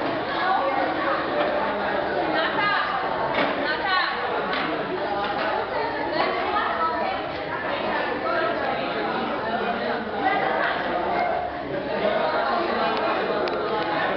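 Many young people chatter at once in a room with a slight echo.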